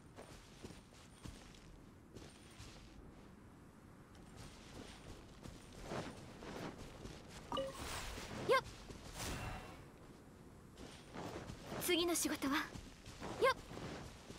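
Footsteps patter quickly over grass.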